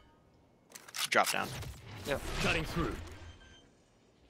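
A magical burst whooshes loudly.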